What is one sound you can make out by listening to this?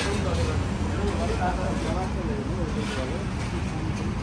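People talk nearby on a busy street.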